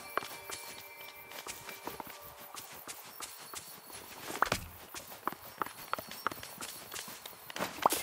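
Footsteps of a game character patter quickly on grass.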